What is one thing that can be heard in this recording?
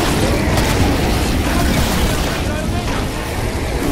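A rifle fires rapid shots.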